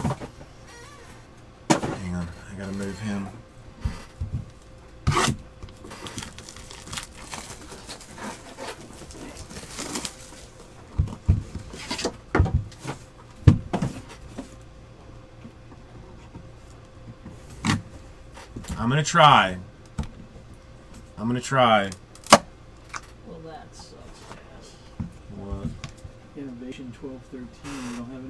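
Cardboard boxes knock and slide on a hard table.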